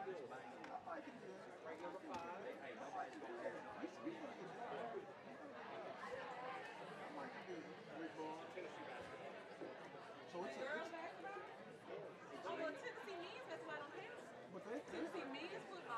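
A large crowd of men and women chatters in a room that echoes.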